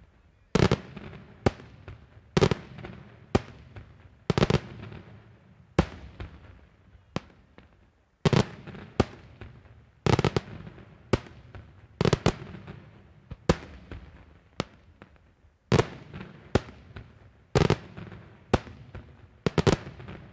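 Firework crackles pop and sizzle high overhead.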